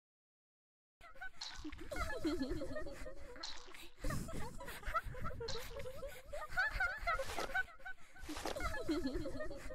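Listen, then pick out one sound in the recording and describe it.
Video game music with a bouncy melody plays.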